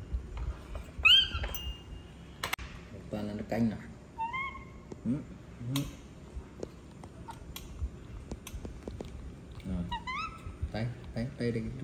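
A baby monkey squeaks in high, rising chirps.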